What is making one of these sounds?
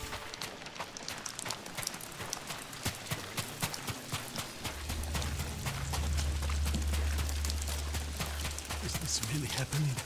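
Footsteps run over gravel and grass.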